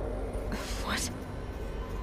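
A young woman speaks quietly with surprise.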